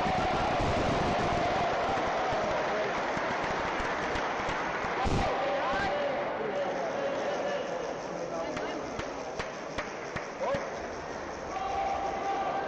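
A table tennis ball clicks against paddles and the table.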